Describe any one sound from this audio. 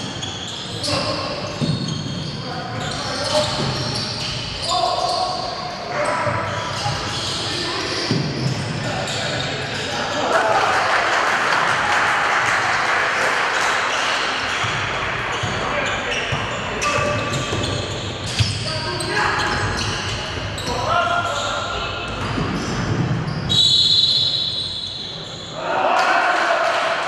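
Spectators cheer and shout in a large echoing hall.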